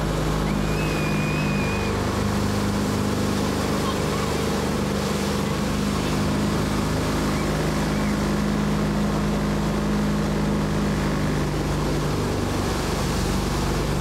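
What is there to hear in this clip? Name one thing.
Water splashes and rushes against a towed inflatable.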